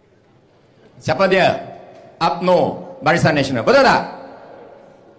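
A man speaks loudly into a microphone, heard through loudspeakers outdoors.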